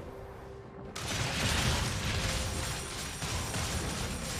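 Magic blasts and weapon clashes of a video game fight crackle and boom.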